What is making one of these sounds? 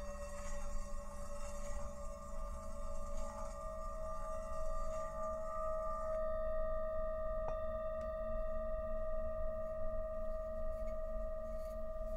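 Metal singing bowls ring with long, steady, humming tones.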